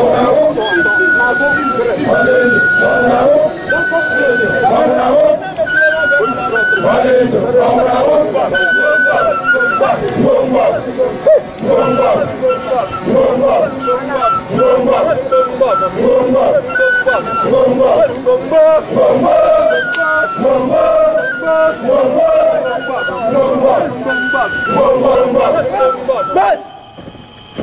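A large group of men chant loudly together in rhythm outdoors.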